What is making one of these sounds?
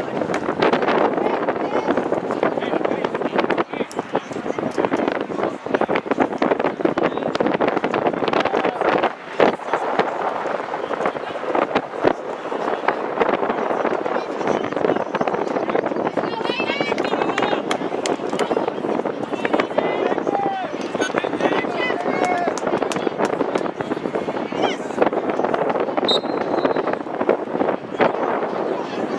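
A crowd murmurs and chatters steadily outdoors.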